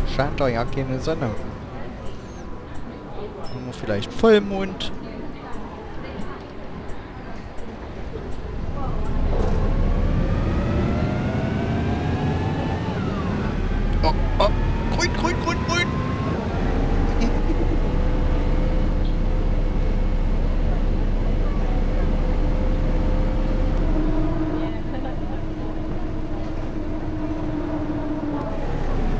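A bus engine rumbles and whines as it picks up speed.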